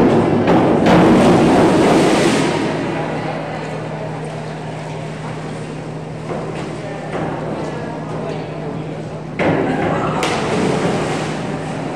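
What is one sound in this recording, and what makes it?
A diver splashes into the water.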